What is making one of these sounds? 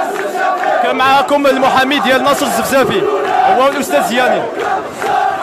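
Men in a crowd shout close by.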